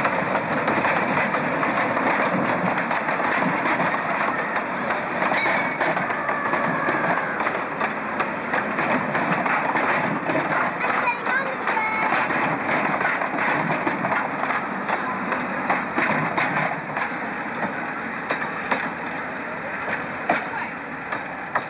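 A narrow-gauge steam locomotive chuffs as it pulls carriages.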